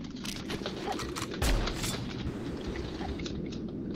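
A gun clicks and rattles as a weapon is switched.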